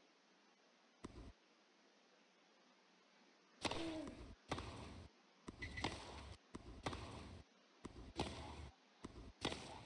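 A tennis ball is struck with a racket in a rally.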